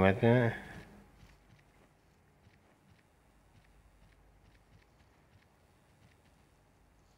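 Light footsteps patter quickly on grass.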